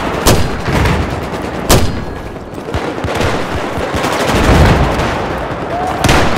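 Loud gunshots ring out now and then.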